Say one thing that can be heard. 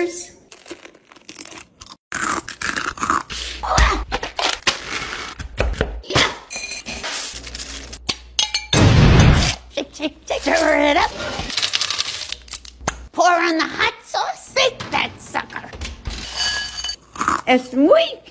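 An elderly woman crunches food while chewing.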